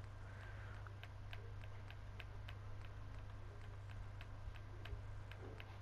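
Soft electronic menu clicks tick in quick succession.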